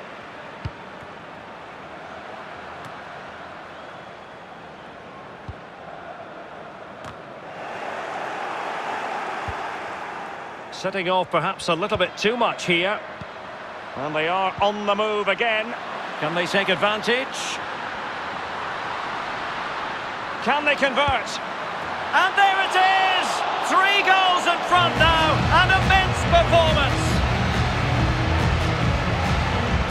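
A large stadium crowd murmurs and roars, swelling into loud cheering.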